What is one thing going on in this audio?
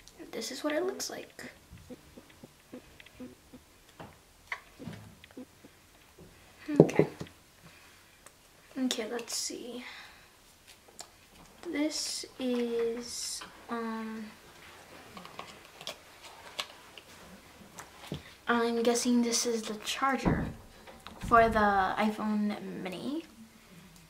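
Cardboard packaging and paper inserts rustle and scrape as hands handle them.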